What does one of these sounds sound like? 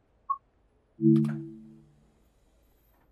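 A train's horn sounds briefly.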